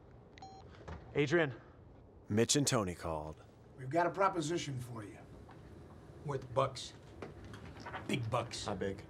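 A middle-aged man speaks with animation.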